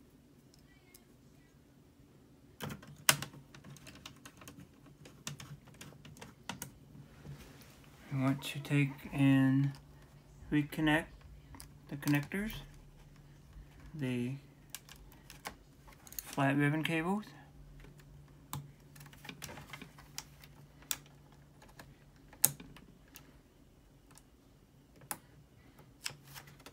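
A screwdriver clicks and taps against metal.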